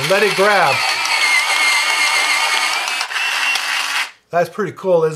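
An electric pencil sharpener whirs and grinds a pencil.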